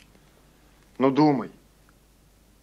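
A second young man answers briefly, close by.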